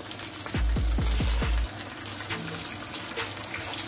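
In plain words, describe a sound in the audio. A wooden spatula scrapes and taps against a frying pan.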